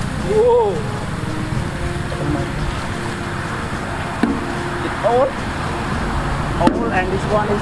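Water gushes and splashes loudly from a pipe onto the ground outdoors.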